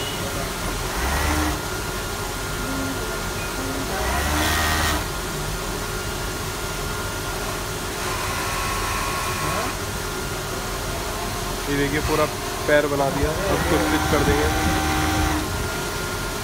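A sewing machine whirs in short bursts.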